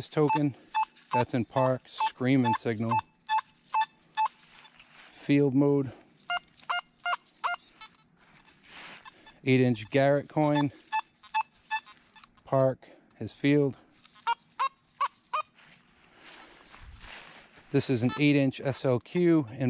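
A metal detector sounds loud, wavering tones that rise and fall in pitch.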